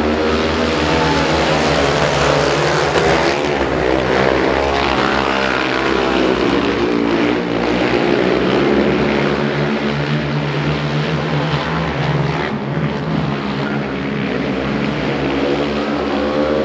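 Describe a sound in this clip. Quad bike engines roar and whine loudly as the bikes race around a track.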